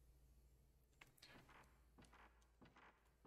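Footsteps tread softly on the ground.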